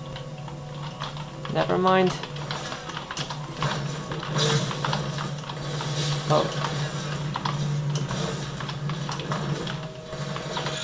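Keys clatter rapidly on a computer keyboard.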